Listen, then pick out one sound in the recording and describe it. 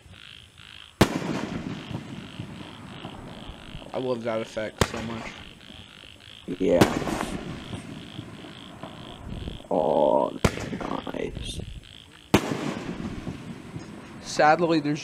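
Sparks crackle and fizz after a firework bursts.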